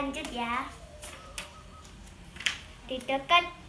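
Paper rustles in a young girl's hands.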